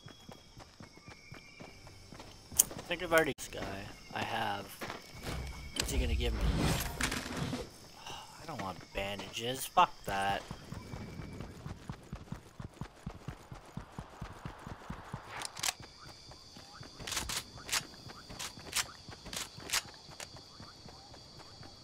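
Quick footsteps patter on the ground.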